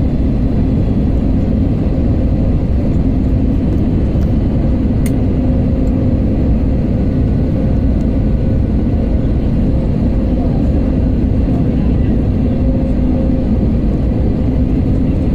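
A jet engine roars steadily with a deep, even rumble.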